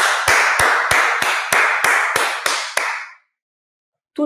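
A man claps his hands quickly.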